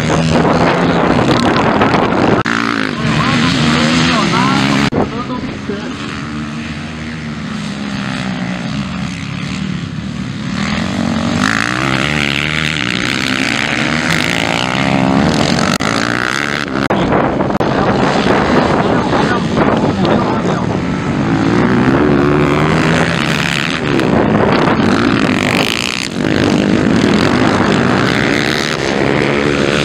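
Dirt bike engines rev loudly and whine, rising and falling in pitch as riders race past.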